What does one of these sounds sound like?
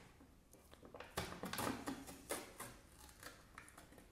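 A foil seal is peeled off a can with a crinkling rip.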